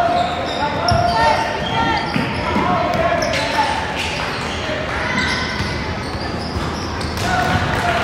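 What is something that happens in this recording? Young players shout and call out in a large echoing gym.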